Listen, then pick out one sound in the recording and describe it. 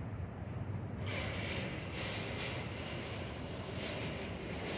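An elevator door rumbles as it slides open.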